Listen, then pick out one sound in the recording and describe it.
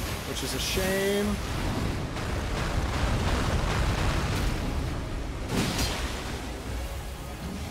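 Water splashes and churns heavily.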